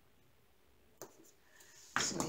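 A small plastic container clicks as it is handled.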